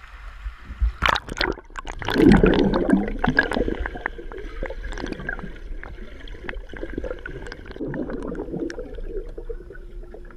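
Water gurgles and bubbles underwater.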